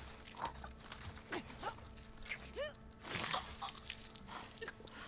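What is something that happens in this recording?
Bodies scuffle and thud in a brief struggle.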